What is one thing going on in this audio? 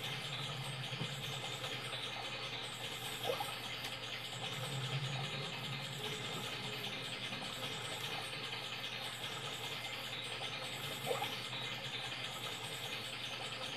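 Game music and sound effects play from a television's speakers.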